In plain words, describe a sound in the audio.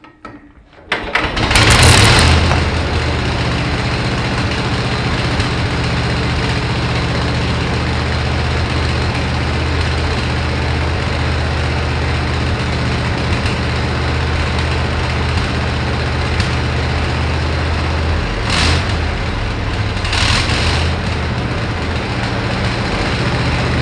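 A small engine starts and runs with a loud, steady rumble.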